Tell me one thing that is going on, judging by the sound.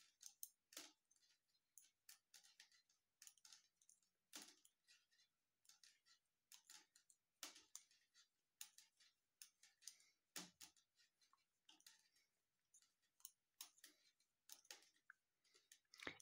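Yarn rustles as it is pulled through stitches.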